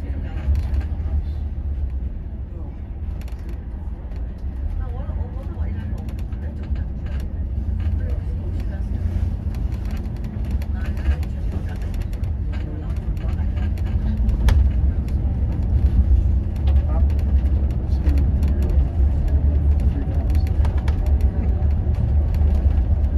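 A bus engine rumbles low and steady as it drives along.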